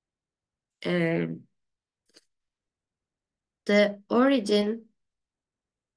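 A woman speaks with animation through a microphone, in short bursts.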